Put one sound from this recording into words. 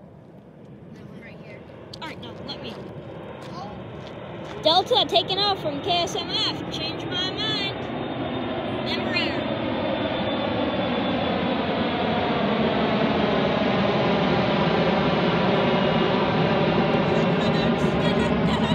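A jet airliner roars overhead, growing steadily louder as it approaches.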